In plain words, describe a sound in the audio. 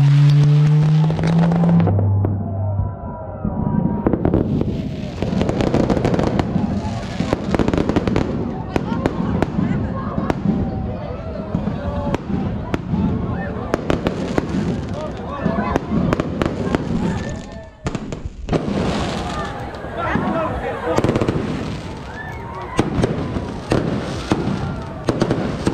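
Fireworks bang and crackle overhead.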